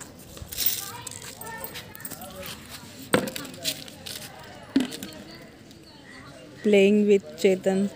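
Footsteps tap on paving outdoors.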